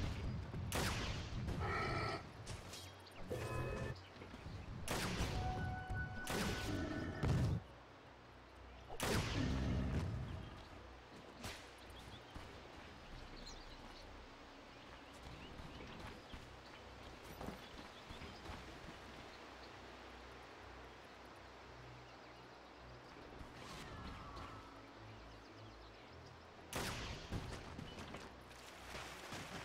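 Magic blasts and weapon strikes crackle in quick bursts.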